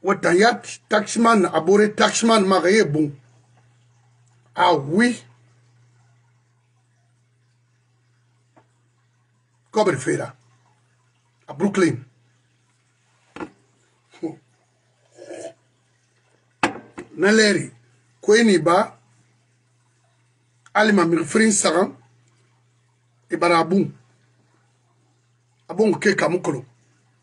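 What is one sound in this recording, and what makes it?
An older man speaks with animation, close to a microphone, with pauses.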